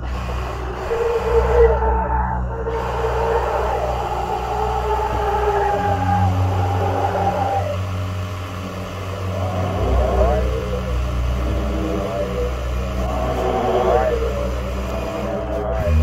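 A sprayer hisses steadily.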